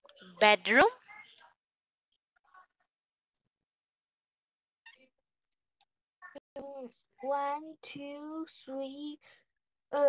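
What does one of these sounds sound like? A young woman speaks animatedly through an online call.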